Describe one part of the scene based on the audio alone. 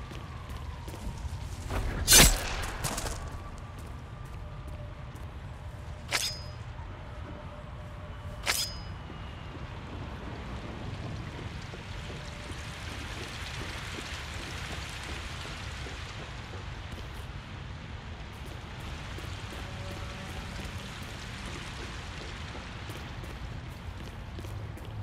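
Footsteps tread on gravel and stone.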